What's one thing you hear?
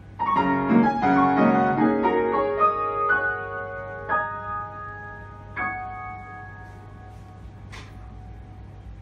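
A piano plays a quick passage, then a final chord rings out and slowly fades in a bare, echoing room.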